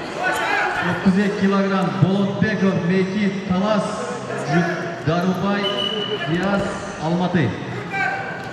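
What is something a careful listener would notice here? A man shouts loudly and repeatedly nearby.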